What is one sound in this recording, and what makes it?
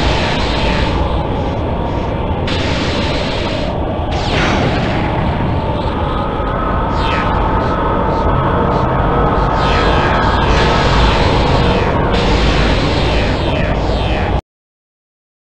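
Air roars past a skydiver in free fall.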